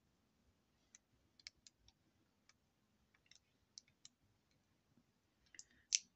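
Small items click and tap softly as hands handle them.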